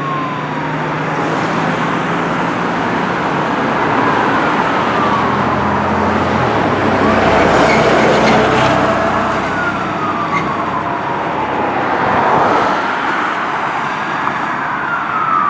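A siren wails nearby, rising and falling steadily.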